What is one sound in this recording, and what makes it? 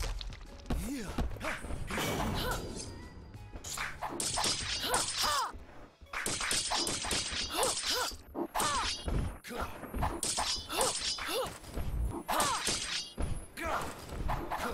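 Metal blades clash and ring in a fight.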